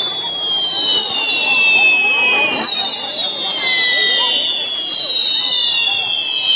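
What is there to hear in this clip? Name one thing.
Firework whistles shriek and slowly fall in pitch.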